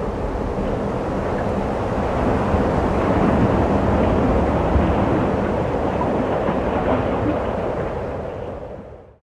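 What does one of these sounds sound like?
Wind blows steadily outdoors, then fades away.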